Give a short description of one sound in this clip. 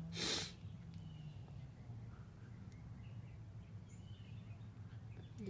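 A cat purrs steadily up close.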